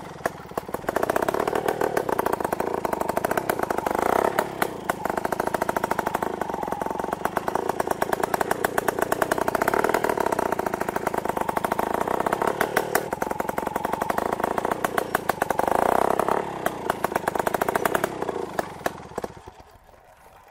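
A trials motorcycle engine revs in sharp bursts as the bike hops.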